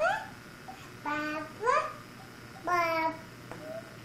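A woman speaks close by in a high, sing-song voice.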